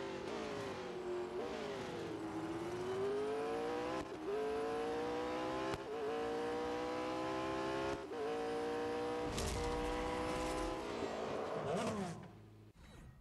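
A racing car engine roars at high revs, rising in pitch and dropping with each gear change.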